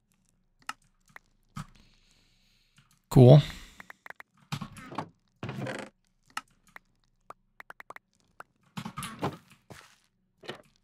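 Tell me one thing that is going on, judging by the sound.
Short soft clicks pop as items are moved about in a game.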